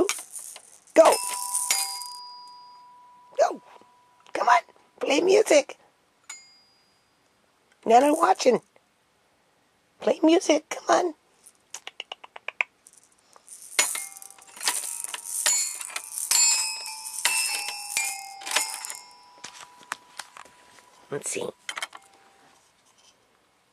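A mallet strikes the metal bars of a toy xylophone, ringing notes.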